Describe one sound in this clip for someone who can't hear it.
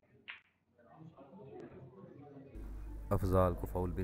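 Snooker balls knock together.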